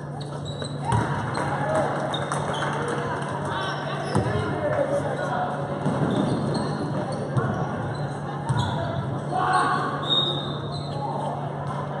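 Sneakers squeak on the gym floor as players run.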